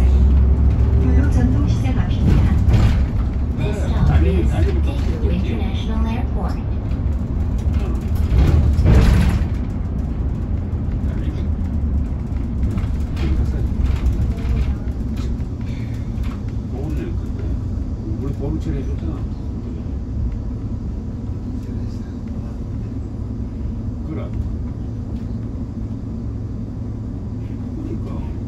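The bus rattles and creaks as it moves.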